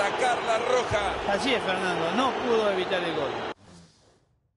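A stadium crowd roars and cheers.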